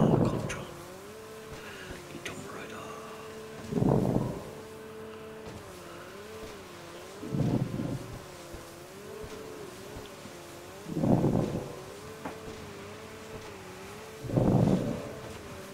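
Water splashes loudly as a jet ski slams over waves.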